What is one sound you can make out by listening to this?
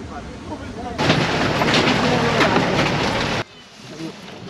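Wind rushes loudly past a moving vehicle.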